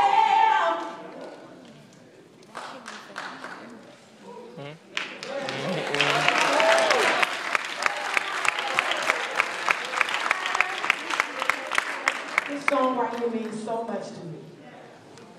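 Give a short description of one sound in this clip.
A congregation sings together in a large echoing hall.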